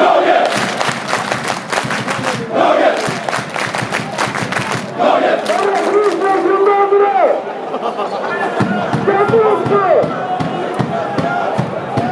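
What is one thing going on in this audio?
A large crowd of fans chants loudly together in a big echoing stadium.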